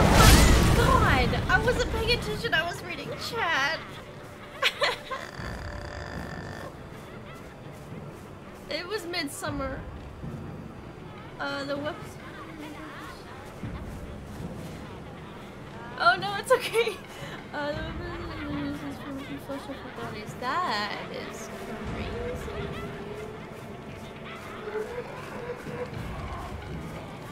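A young woman talks casually into a headset microphone.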